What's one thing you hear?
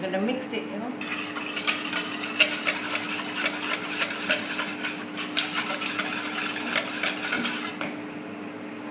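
A wire whisk beats rapidly against the inside of a plastic bowl.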